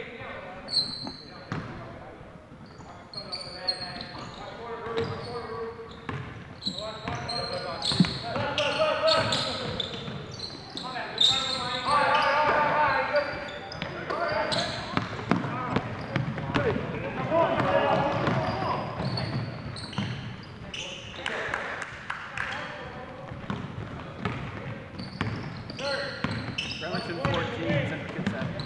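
Basketball shoes squeak sharply on a hard court in a large echoing gym.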